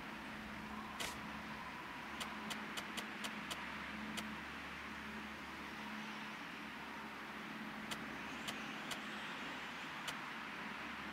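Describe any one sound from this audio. Short sharp interface clicks tick as menu options are changed.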